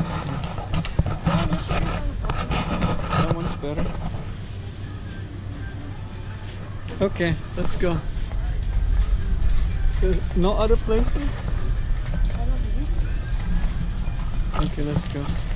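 A shopping cart rattles and rumbles as it rolls over a hard floor.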